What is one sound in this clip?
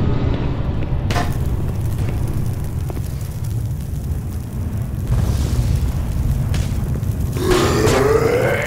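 A flare hisses and crackles as it burns.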